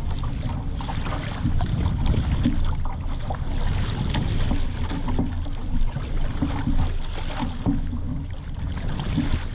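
Water splashes and slaps against a boat's hull.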